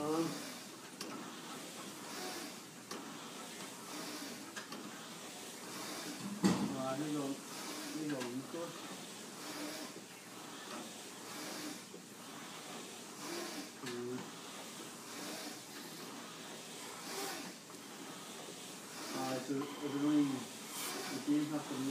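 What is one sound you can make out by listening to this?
A weight machine's cable and plates clank and rattle.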